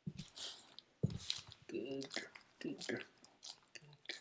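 A hand rubs through a dog's fur.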